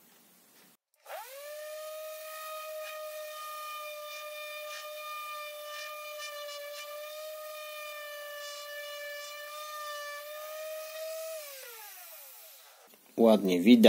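An electric sander whines steadily, then winds down.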